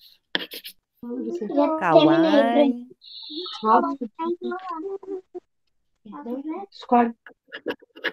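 A young girl talks through an online call.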